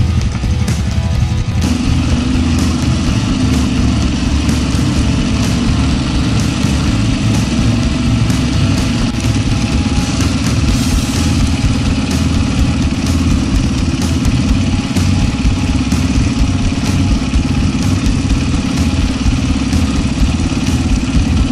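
A motorbike engine drones loudly close by.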